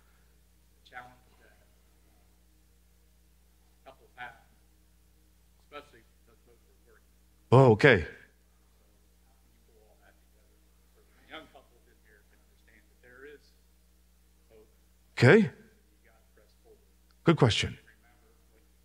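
A man speaks slowly and calmly into a headset microphone, with long pauses.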